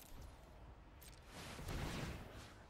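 A bright magical whoosh rises and fades.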